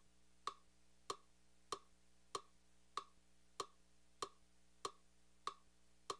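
A small synthesizer plays a steady, even beat of short clicking drum hits.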